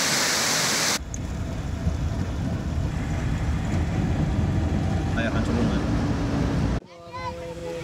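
A car's engine and tyres rumble from inside as it drives on a paved road.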